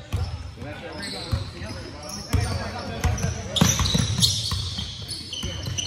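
Basketballs bounce on a hardwood floor, echoing in a large hall.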